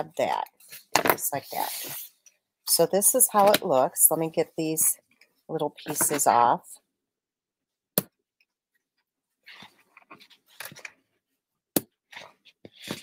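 Paper rustles as it is handled and folded.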